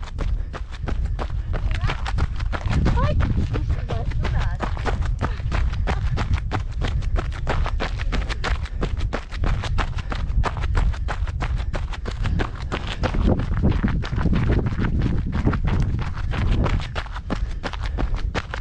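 Footsteps crunch steadily on loose gravel close by.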